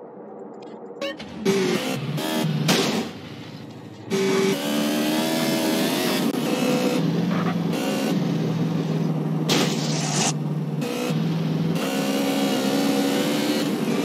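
A motorcycle engine revs and roars.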